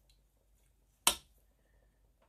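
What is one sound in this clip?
Metal tongs clink against a steel pot.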